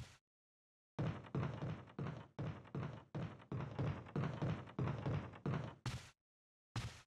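Footsteps thud steadily up wooden stairs.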